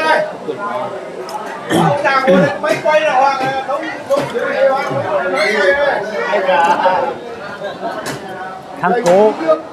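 Middle-aged men talk nearby with animation.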